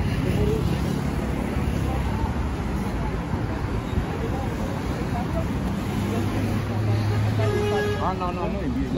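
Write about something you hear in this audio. Traffic rumbles steadily along a nearby city street.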